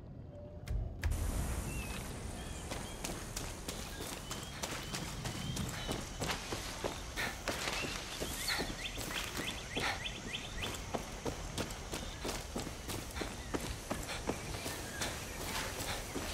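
Footsteps crunch through grass and dirt outdoors.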